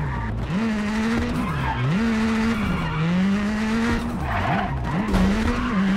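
Tyres skid and scrape on tarmac in the corners.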